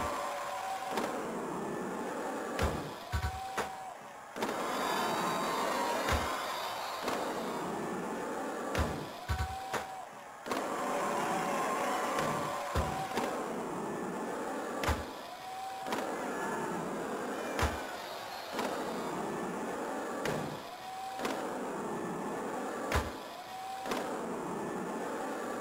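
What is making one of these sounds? Skateboard wheels roll steadily on a ramp.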